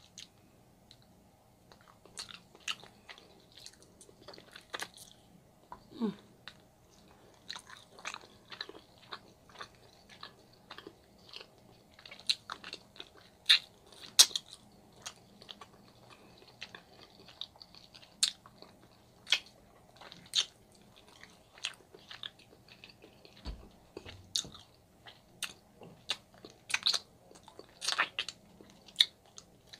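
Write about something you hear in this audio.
A woman chews food noisily and close to a microphone.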